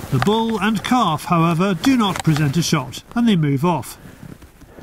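A moose calls loudly with a wavering moan.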